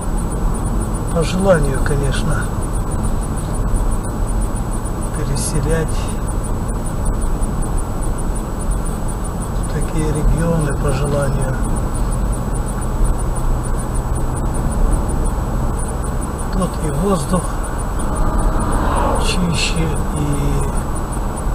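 A car's tyres rumble steadily on a paved road.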